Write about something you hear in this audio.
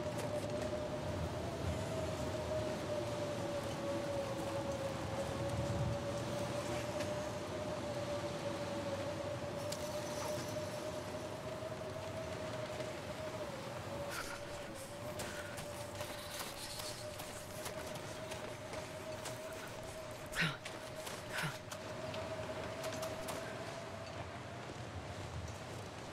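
A strong wind howls steadily through a snowstorm.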